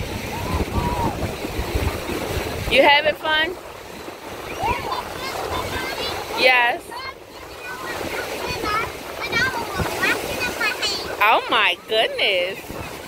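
Small waves wash and break onto the shore.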